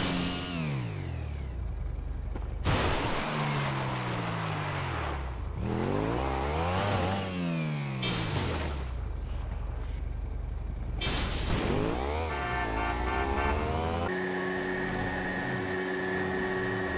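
A motorcycle engine revs up and down at high speed.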